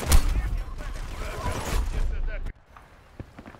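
An explosion rumbles close by.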